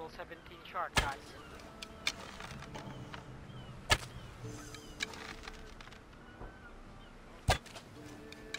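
A bow string snaps as an arrow is shot.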